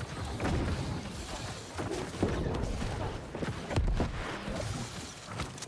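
Weapons clash and spells burst in a game battle.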